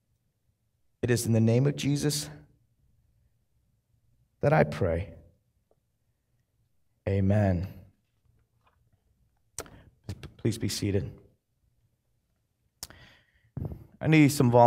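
A man speaks with pauses through a microphone.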